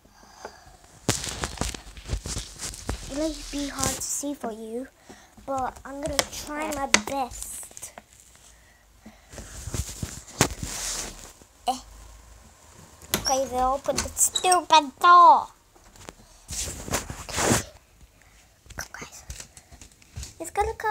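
A phone rustles and bumps against hands.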